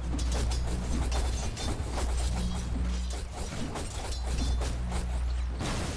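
Game characters clash in combat with rapid hits and spell effects.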